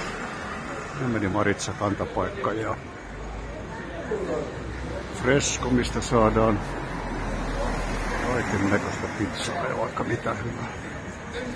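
People chat at a distance.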